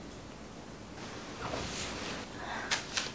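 A duvet rustles as someone rolls over in bed.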